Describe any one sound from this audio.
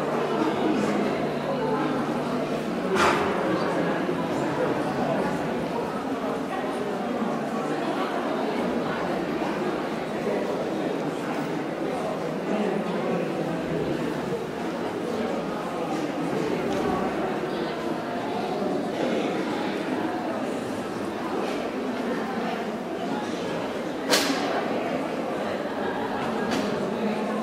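A woman speaks to a dog in a large indoor hall.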